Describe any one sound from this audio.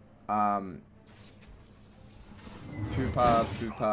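Magic spells whoosh and chime.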